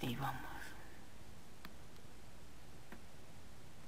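A stone block is set down with a short, soft thud.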